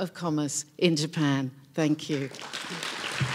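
An older woman speaks calmly through a microphone.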